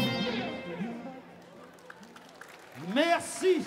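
Guitars ring out on a final chord and slowly fade.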